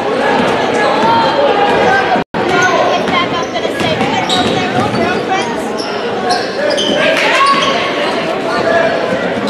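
A large crowd murmurs and cheers in an echoing gym.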